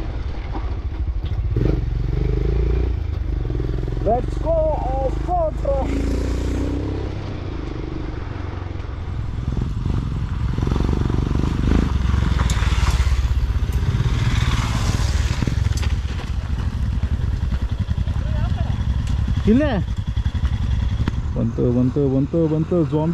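Tyres crunch over a rough dirt track.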